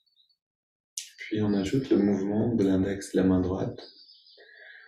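A man speaks calmly and softly over an online call.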